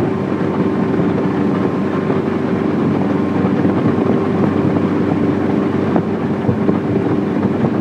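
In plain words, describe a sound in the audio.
Wind buffets over an open boat.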